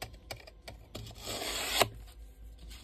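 A pencil scratches along a metal ruler on foam.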